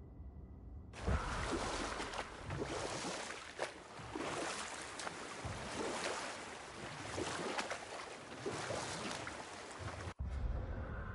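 Oars splash and churn through water as a boat is rowed.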